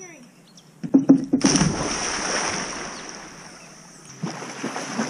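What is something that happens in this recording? A girl splashes into a pool.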